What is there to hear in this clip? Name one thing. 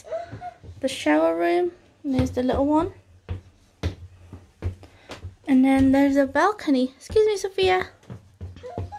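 A young child talks in a high voice close by.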